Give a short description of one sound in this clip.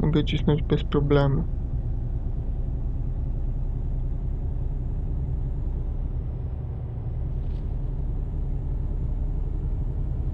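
A diesel truck engine drones under way in a game.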